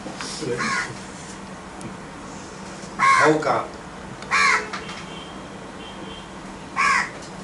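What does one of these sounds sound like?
A middle-aged man speaks calmly in short bursts with pauses.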